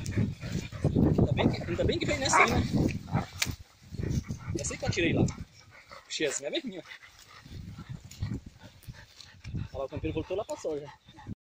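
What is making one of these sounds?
Dogs pant heavily close by.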